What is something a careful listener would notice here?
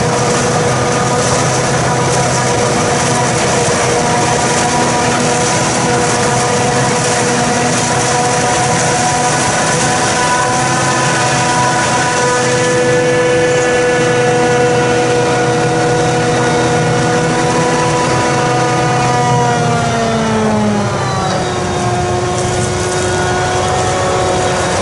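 A large harvester engine roars loudly with a steady whine that drops in pitch near the end.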